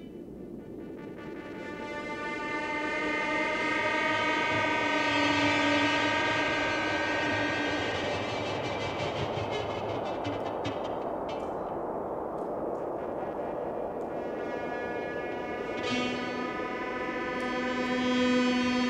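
An electric bass plays a low line.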